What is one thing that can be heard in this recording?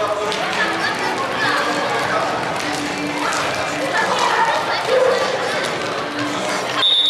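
Young children shout and cheer in an echoing indoor hall.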